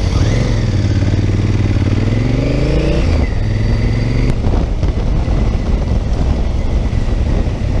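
Wind rushes and buffets loudly against the rider.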